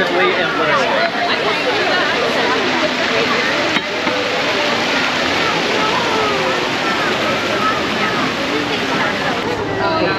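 Many people chatter in a crowd outdoors.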